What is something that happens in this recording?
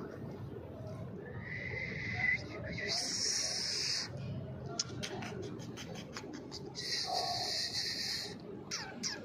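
A dog pants quickly.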